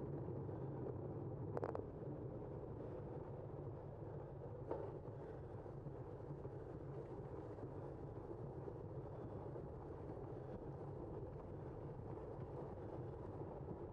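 Bicycle tyres roll with a steady hum on smooth pavement.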